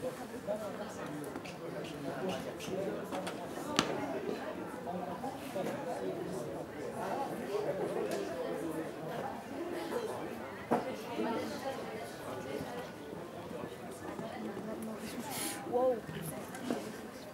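A horse canters across a sand arena, hooves thudding softly.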